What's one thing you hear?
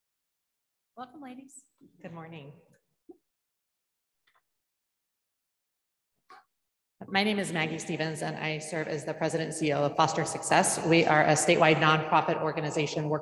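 A woman speaks steadily into a microphone.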